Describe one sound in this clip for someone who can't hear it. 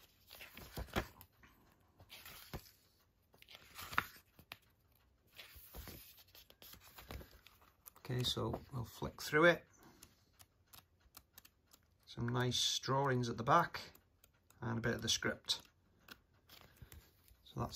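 Paper pages rustle and flap as a booklet is leafed through.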